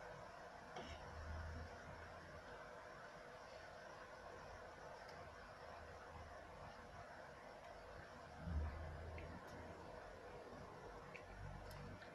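Pieces of meat plop and splash into a pot of hot broth.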